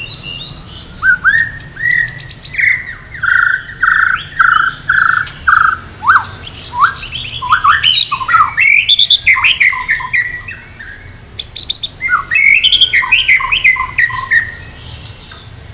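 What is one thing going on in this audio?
A songbird sings loud, varied whistling phrases close by.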